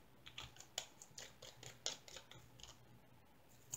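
Small plastic containers click and tap together in someone's hands.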